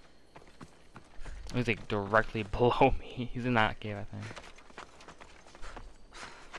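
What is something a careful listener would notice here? Footsteps tread quickly over rocky ground.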